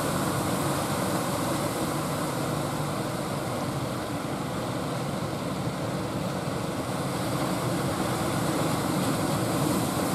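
A boat engine drones steadily close by.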